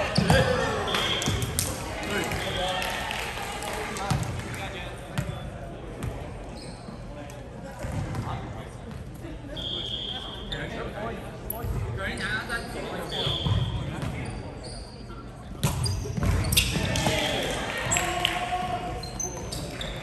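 Young men and women call out and chatter nearby.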